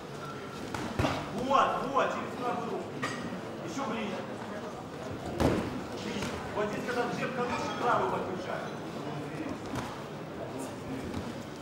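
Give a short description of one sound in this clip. Boxing gloves thud against bodies.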